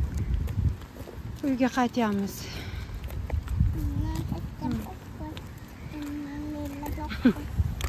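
A little girl babbles close by.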